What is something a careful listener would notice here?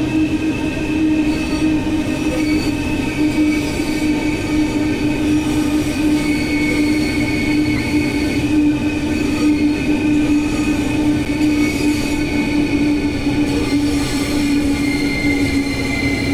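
Train wheels rumble and clatter on the rails.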